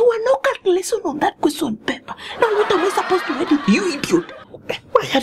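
A woman speaks loudly and with animation nearby.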